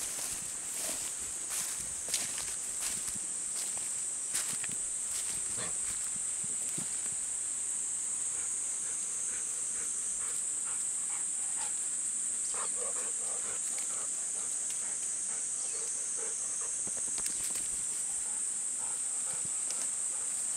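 A dog's paws rustle through grass close by.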